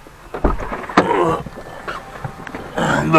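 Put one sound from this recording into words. An elderly man talks nearby.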